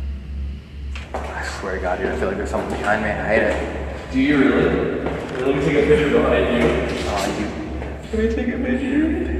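A man talks excitedly and loudly close by.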